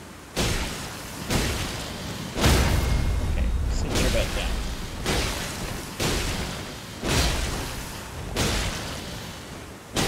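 A huge winged creature screeches and roars.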